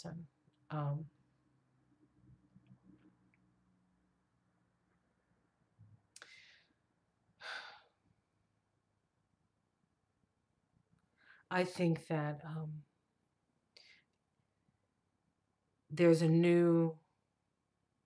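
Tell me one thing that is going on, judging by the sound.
A middle-aged woman speaks slowly and quietly in pauses, close to a microphone.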